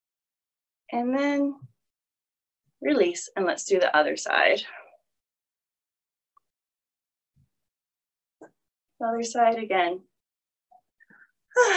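A woman speaks calmly, close by, through an online call, in short phrases with pauses.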